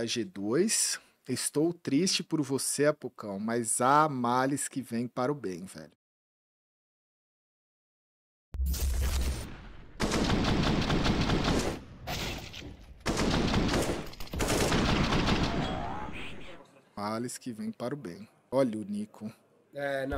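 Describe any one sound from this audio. A man talks with animation through a microphone.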